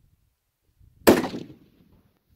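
A rifle fires a loud shot outdoors.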